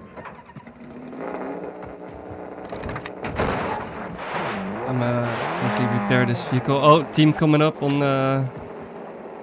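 An off-road buggy engine revs and rumbles as it drives over dirt.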